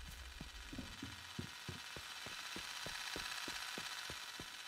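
Footsteps run across gravel.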